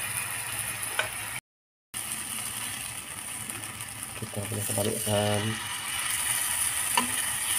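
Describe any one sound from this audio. Metal tongs clink against a pan.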